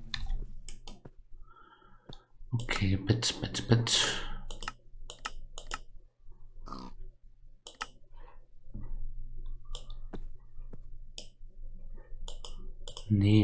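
Menu buttons click sharply several times.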